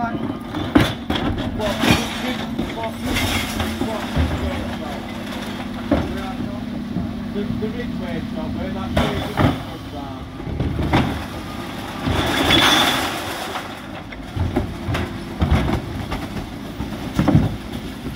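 Wheelie bin wheels rumble over wet tarmac.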